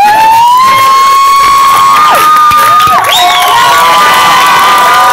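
A crowd of young men and women cheers and shouts.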